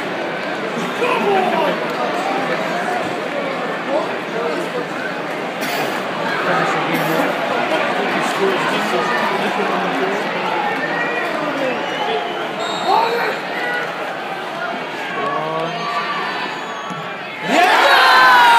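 A stadium crowd murmurs and chatters.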